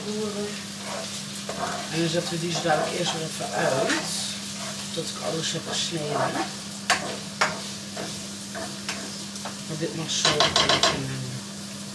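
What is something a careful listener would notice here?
A spatula scrapes and stirs in a frying pan.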